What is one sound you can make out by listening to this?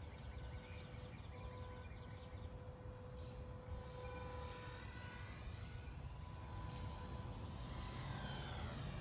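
A small drone hums faintly in the air.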